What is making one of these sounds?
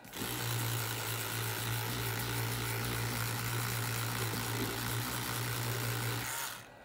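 An electric toothbrush buzzes steadily while scrubbing a circuit board.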